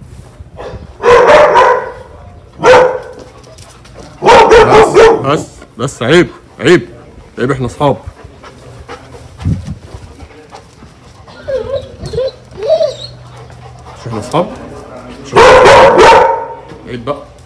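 A dog barks loudly nearby in short bursts.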